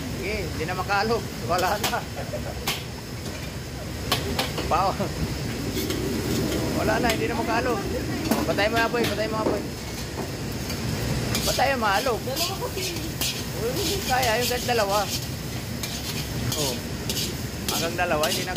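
Rice sizzles in hot oil.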